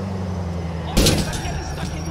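A car crashes into something with a loud bang.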